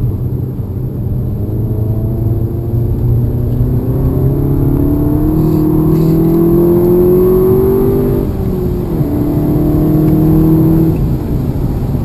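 An engine drones and rises in pitch as a vehicle speeds up, then drops and rises again.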